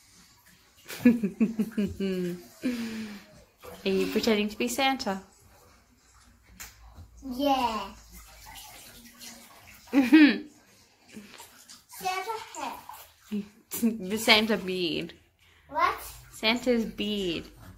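A young child babbles and laughs playfully close by.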